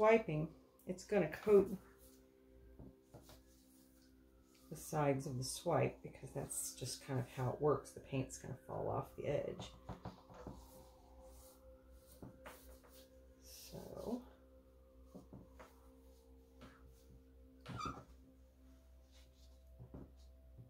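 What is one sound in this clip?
A gloved hand rubs and smooths wet paint across a board.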